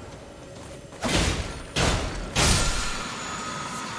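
Game sound effects whoosh and burst loudly.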